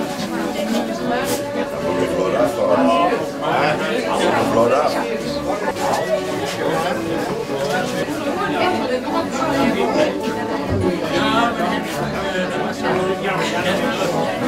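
A crowd of adults chatters close by in a busy room.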